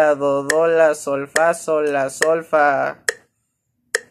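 A young man sings close by.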